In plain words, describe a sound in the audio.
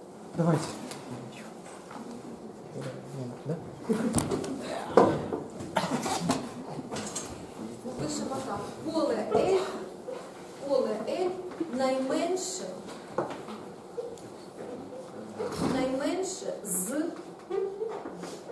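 A middle-aged woman lectures calmly.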